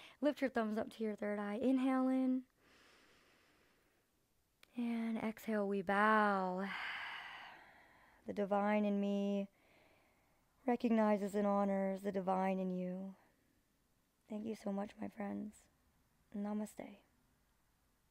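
A young woman speaks calmly and softly, close to a microphone.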